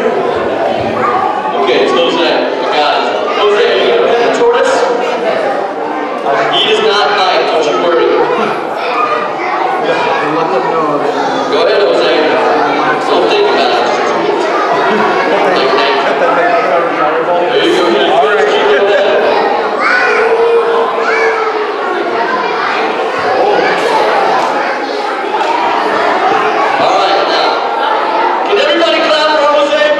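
A young man speaks calmly through a handheld microphone in a large room.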